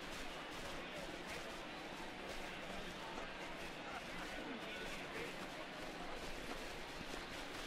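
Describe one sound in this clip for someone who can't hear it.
Players slap hands in high fives.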